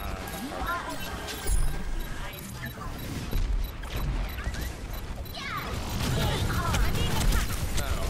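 A weapon fires sharp shots.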